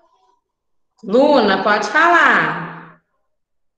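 A young woman speaks calmly and close to a microphone, as if on an online call.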